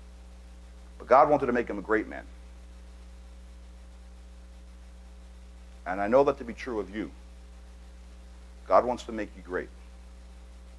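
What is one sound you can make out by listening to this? A man speaks in short bursts with pauses through a microphone.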